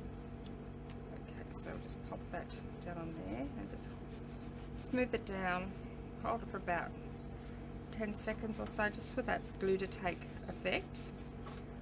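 Hands rub and press down on card stock.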